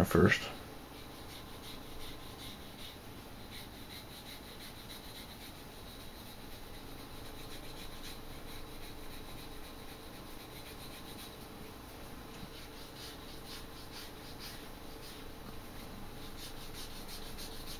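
A leather strap rubs and scrapes against a piece of wood.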